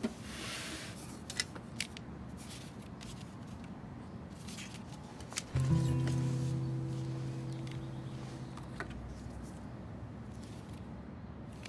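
A plastic box rattles as it is handled.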